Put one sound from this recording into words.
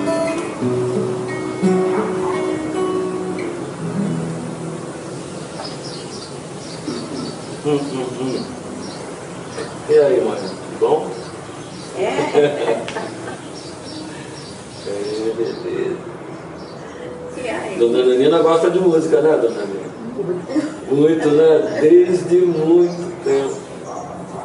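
A man strums an acoustic guitar close by.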